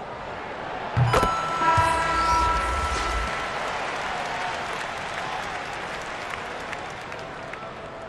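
A crowd cheers loudly and then settles.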